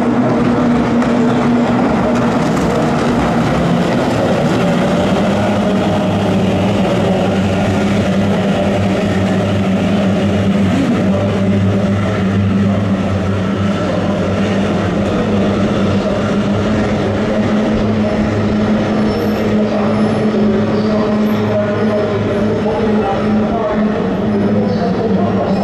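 Racing boat engines drone steadily across open water.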